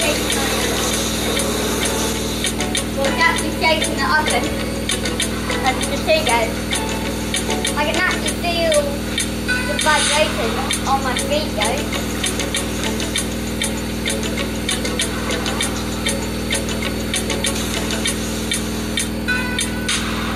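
Laundry and water slosh and thump inside a washing machine drum.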